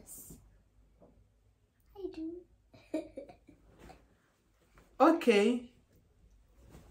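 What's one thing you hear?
A young girl laughs close by.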